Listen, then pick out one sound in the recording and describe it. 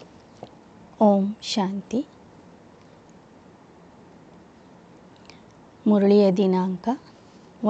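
An elderly woman speaks slowly and calmly into a close microphone.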